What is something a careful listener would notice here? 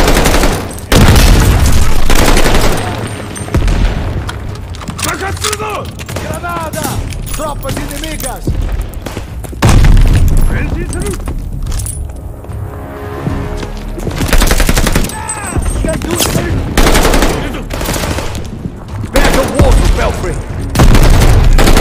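An automatic rifle fires in loud bursts.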